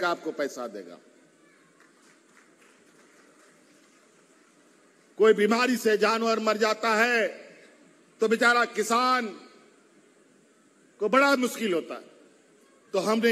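A man speaks forcefully through a microphone and loudspeakers, in bursts with pauses.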